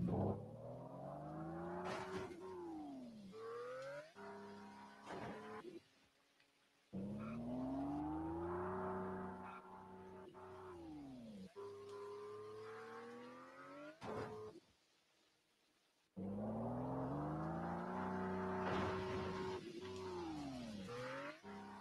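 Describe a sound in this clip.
A car engine revs up and down, rising and falling in pitch.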